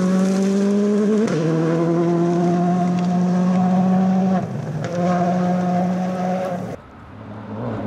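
A rally car engine roars at high revs as the car races along a gravel road.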